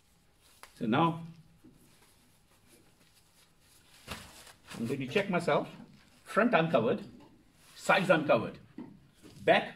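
A plastic gown rustles.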